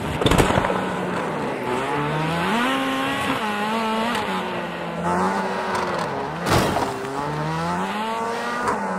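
A race car engine revs up and down.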